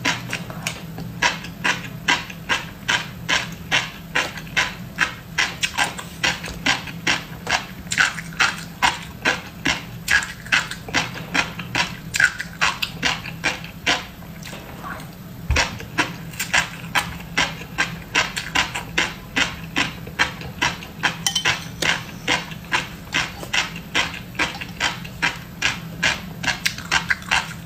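A young woman chews crunchy fish roe close up, with rapid popping crackles.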